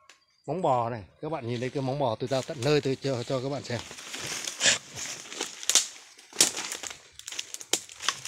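Leafy branches rustle as they brush past close by.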